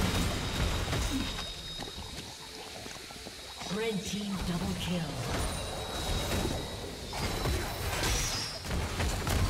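Fantasy battle sound effects crackle and thump as spells hit.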